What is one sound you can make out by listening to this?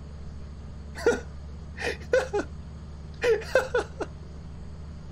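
A young man laughs into a close microphone.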